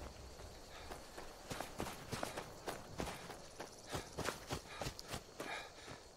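Footsteps crunch steadily over snowy ground.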